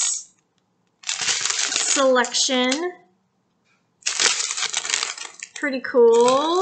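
A plastic strip crinkles in a woman's hands.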